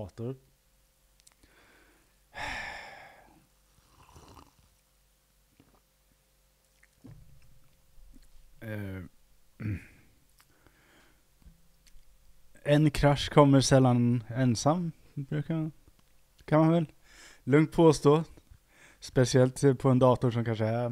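A man speaks through a headset microphone.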